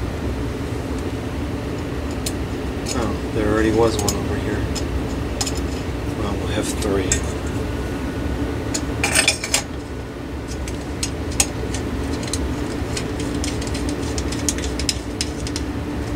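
Small metal and glass parts click and tap as a light fixture is handled up close.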